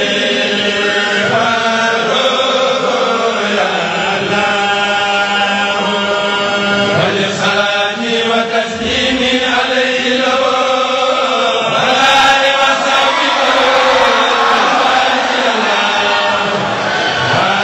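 A group of men chant together in unison through loudspeakers, in a large echoing gathering.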